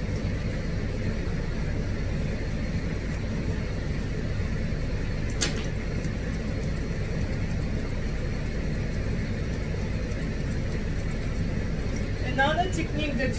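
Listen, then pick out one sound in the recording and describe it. Scissors snip through dog fur close by.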